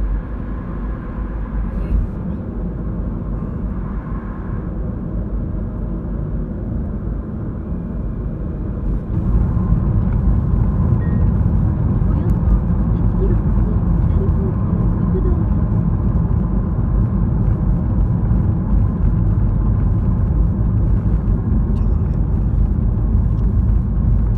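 A car engine hums steadily from inside the car as it drives along a road.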